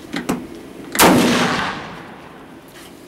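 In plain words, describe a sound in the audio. A pistol fires a single loud shot that echoes outdoors.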